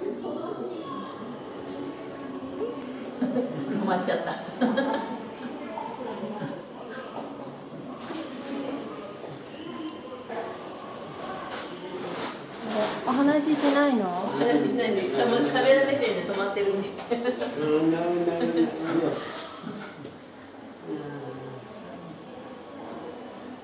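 Women talk and chat cheerfully close by.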